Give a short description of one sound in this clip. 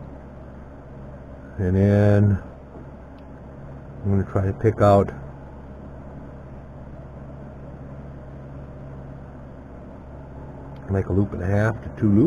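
Thin metal rods tap and clink softly on a wooden bench.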